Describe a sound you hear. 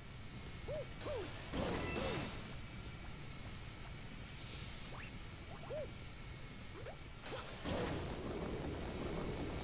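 A loud whoosh sweeps past.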